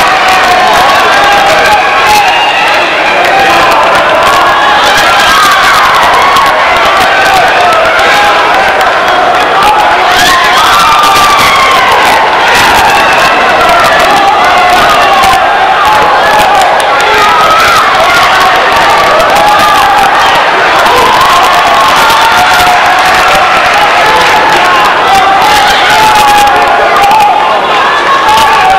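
A large crowd chatters and cheers in a big echoing hall.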